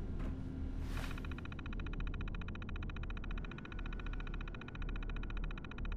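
A computer terminal chatters steadily as text prints out.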